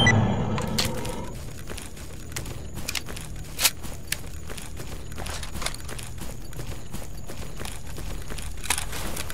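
Footsteps crunch quickly over grass.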